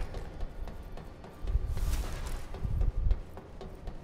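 Footsteps run across a hard floor.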